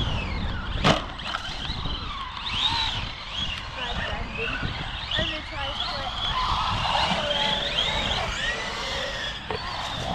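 The brushless electric motor of a radio-controlled truck whines as it speeds up and slows down.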